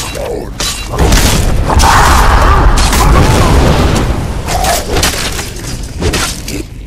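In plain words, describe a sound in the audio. Flames roar in a loud burst.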